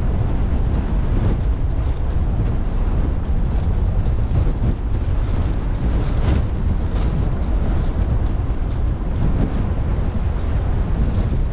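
Strong wind blows and buffets outdoors.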